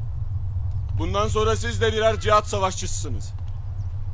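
A man speaks loudly and sternly nearby.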